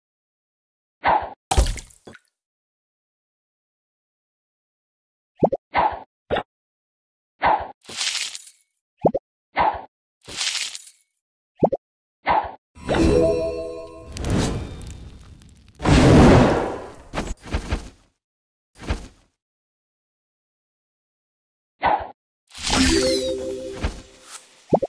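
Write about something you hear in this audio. Short popping sound effects play each time a bubble is shot.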